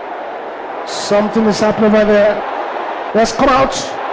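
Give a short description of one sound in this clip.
A man speaks loudly and forcefully into a microphone.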